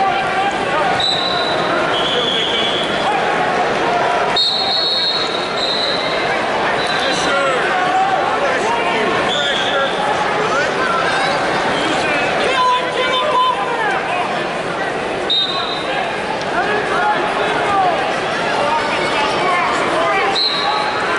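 Whistles blow in short sharp blasts.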